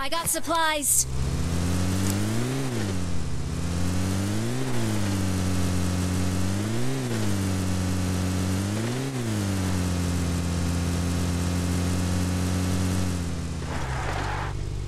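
A car engine drones steadily, rising and falling in pitch every couple of seconds.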